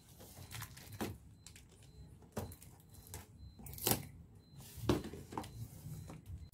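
Scissors snip and cut through packing tape.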